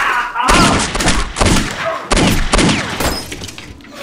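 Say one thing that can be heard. A man shouts angrily at close range.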